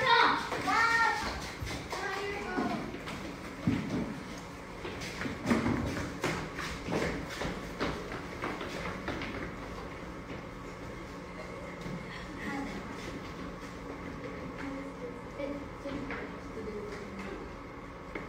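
Feet thump and shuffle on a wooden floor as dancers move.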